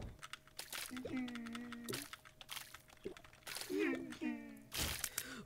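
Monsters let out low gurgling groans.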